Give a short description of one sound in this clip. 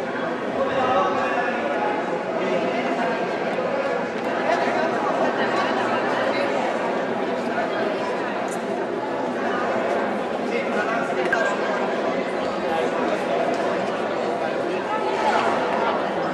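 A large crowd of men and women murmurs and chatters throughout, echoing in a large hall.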